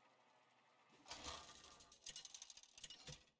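A game's spinning reel clatters and clicks as it stops.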